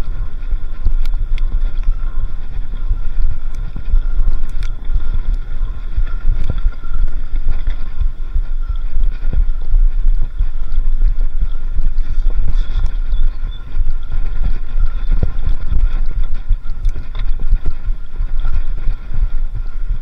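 Wind rumbles loudly across a close microphone.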